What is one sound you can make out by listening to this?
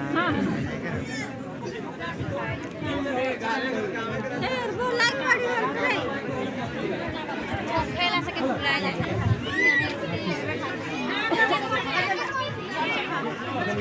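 A crowd of men, women and children chatter loudly all around.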